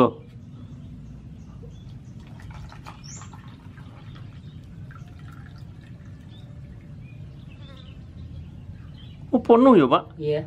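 Liquid glugs as it pours from a plastic jug into a cup.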